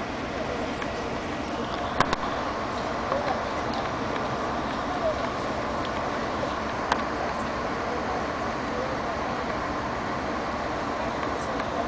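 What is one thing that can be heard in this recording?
A locomotive's wheels clank on the rails as it creeps along.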